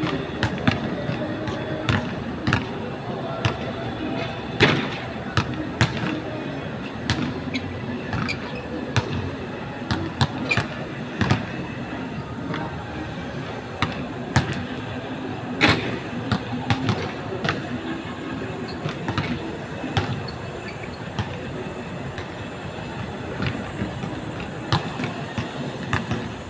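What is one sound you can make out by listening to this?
A basketball bounces on an outdoor court, with sharp thuds now and then.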